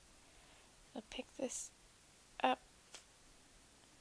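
Paper peels off with a soft rustle.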